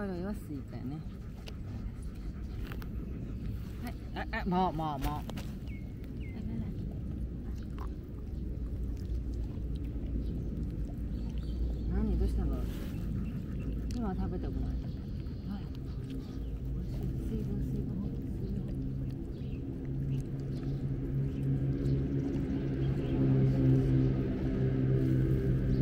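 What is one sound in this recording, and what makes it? A puppy chews and smacks its lips close by.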